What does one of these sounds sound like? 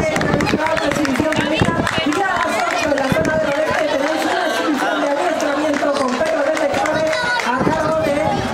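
Lively music with singing plays loudly over loudspeakers outdoors.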